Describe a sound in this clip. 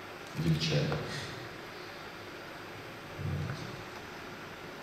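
A man speaks a few slow words into a microphone in a large hall, with long pauses.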